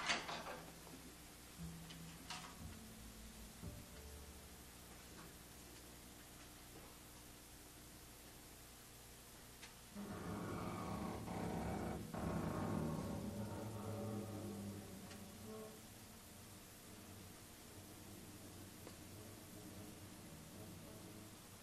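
A drummer plays softly on drums and cymbals.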